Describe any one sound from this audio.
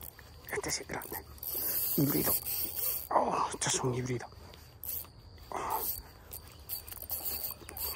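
A fishing reel whirs and clicks as its line is wound in.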